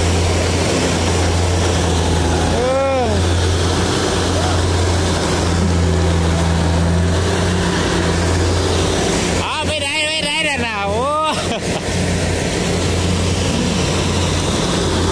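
A combine harvester engine drones steadily close by.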